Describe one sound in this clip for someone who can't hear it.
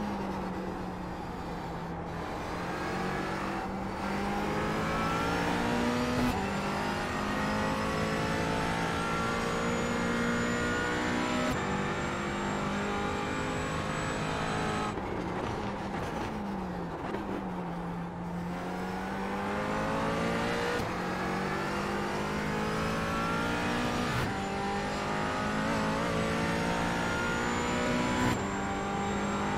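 A race car engine roars loudly, rising in pitch through the gears and dropping when the driver brakes.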